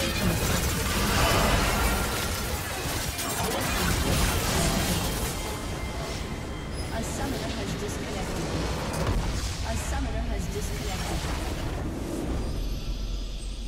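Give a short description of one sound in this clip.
Game battle effects crash and blast in quick succession.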